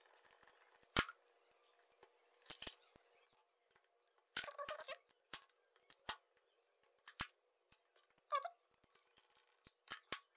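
Plastic parts click and snap as a casing is pried open.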